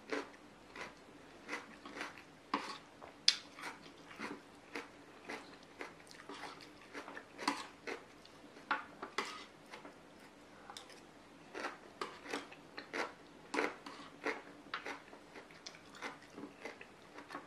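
A spoon scrapes and clinks against a metal plate.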